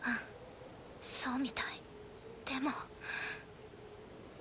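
A second young woman answers calmly.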